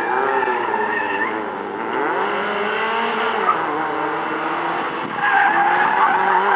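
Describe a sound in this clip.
Tyres squeal on asphalt as a car turns sharply.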